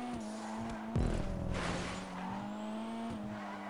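Tyres screech briefly as a car slides through a bend.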